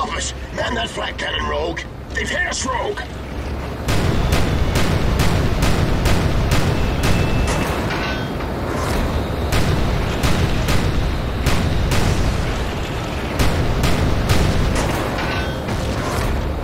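A low engine roar drones steadily.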